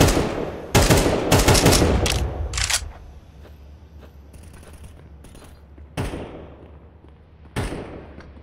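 A rifle fires loud, echoing shots in quick bursts.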